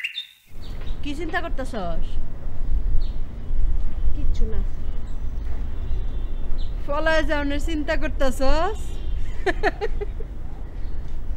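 An elderly woman speaks quietly nearby.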